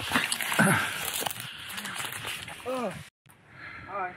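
Branches rustle and twigs snap as a man climbs through a tree.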